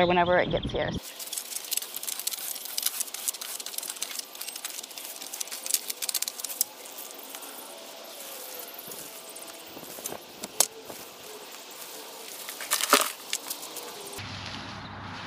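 A hoe scrapes and rustles through soil and leaves.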